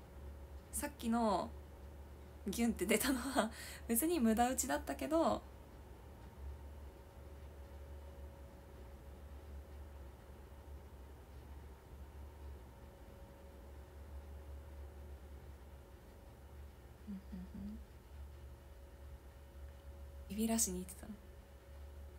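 A young woman talks softly, close to a microphone.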